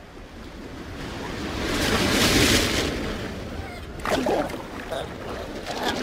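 Waves crash and foam over rocks.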